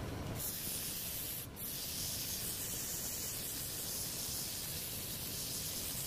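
A chisel scrapes and hisses against turning wood.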